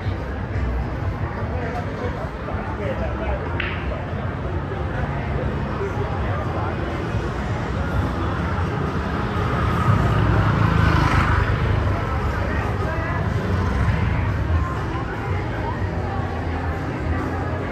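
Street noise murmurs steadily outdoors.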